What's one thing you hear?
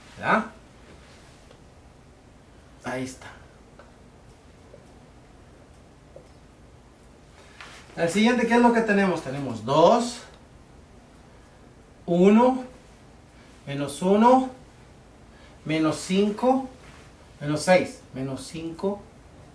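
An older man speaks calmly, explaining, close by.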